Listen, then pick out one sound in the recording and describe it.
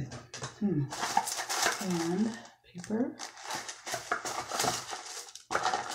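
Tissue paper rustles in a box.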